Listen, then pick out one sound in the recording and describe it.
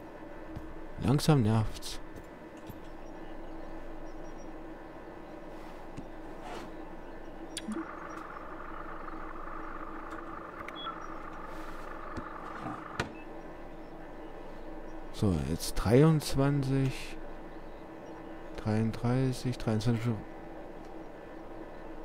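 Computer fans hum steadily.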